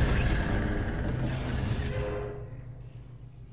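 A heavy chest rumbles open with a metallic clatter.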